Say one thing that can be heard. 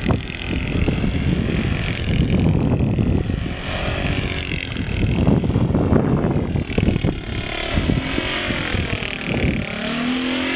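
Wind rumbles into the microphone outdoors.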